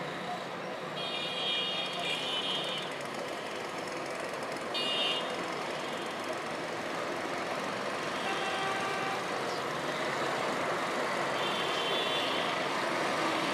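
Car horns honk far off now and then.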